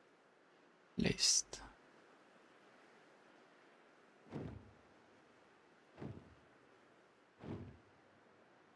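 A bird's wings whoosh as it swoops through the air.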